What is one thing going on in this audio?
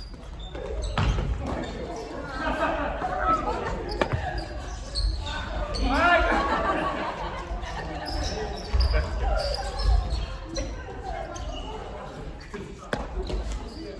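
Shuttlecocks are hit with rackets with sharp pops.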